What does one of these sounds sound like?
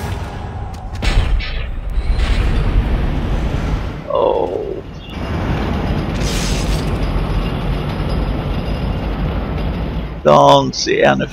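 A heavy machine rumbles steadily and low.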